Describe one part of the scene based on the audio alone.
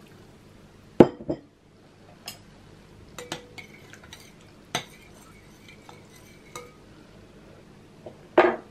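A spoon clinks against a glass bowl while stirring.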